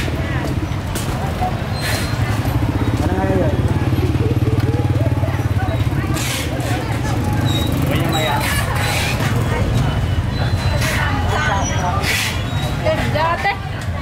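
A motorbike engine hums past nearby.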